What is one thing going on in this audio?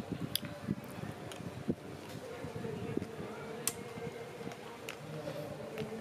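A young woman chews and smacks her lips while eating.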